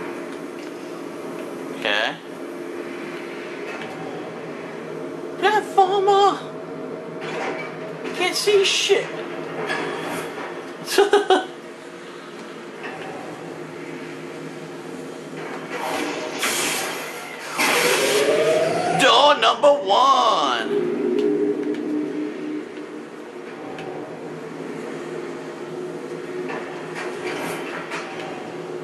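A low electric hum drones steadily throughout.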